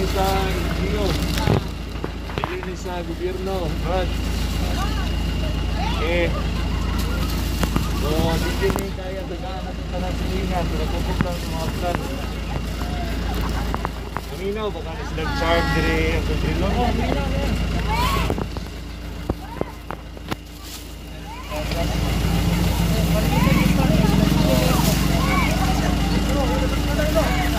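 Plastic bags rustle as they are handed over.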